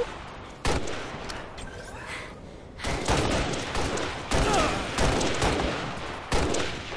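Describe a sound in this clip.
Gunshots fire loudly in quick bursts.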